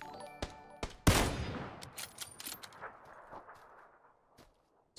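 A rifle shot cracks and echoes away.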